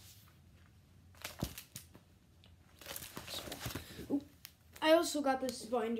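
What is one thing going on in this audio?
A paper bag rustles and crinkles as it is handled.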